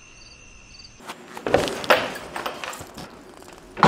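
A door latch clicks and the door swings open.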